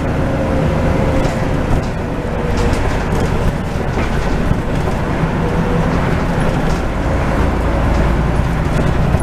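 A bus engine rumbles steadily while the bus drives.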